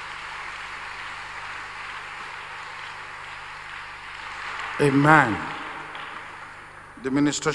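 A large crowd claps and applauds, then fades away.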